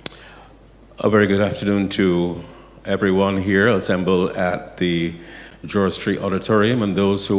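A man speaks clearly and calmly into a microphone in a room with a slight echo.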